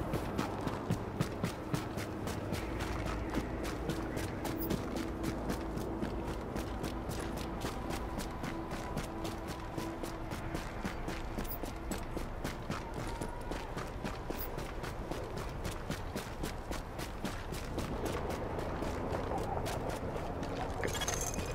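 Footsteps run quickly over crunchy snow.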